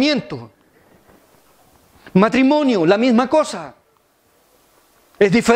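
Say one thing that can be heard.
A middle-aged man speaks through a microphone in slow phrases with pauses.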